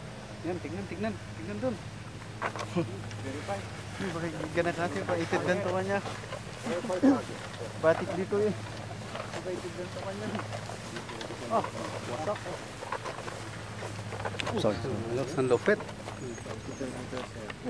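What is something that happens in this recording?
Several men talk and call out to each other outdoors.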